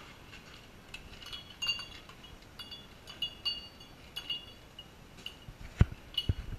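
Glasses clink and ring softly.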